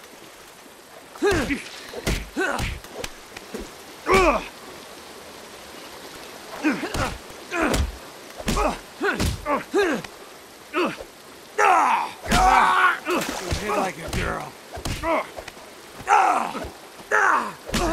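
Fists thump against bodies.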